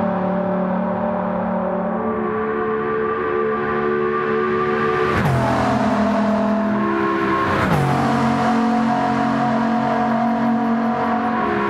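A hypercar engine roars at full throttle.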